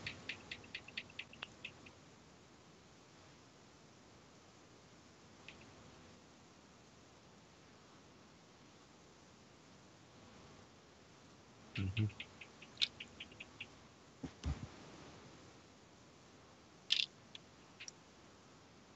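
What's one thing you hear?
Short electronic chimes and clicks ring out in quick bursts.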